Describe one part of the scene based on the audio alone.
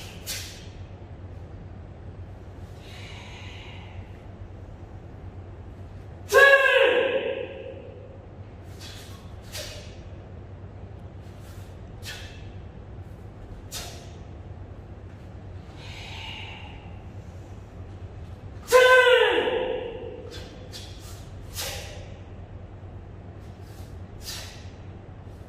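A karate uniform snaps sharply with quick strikes.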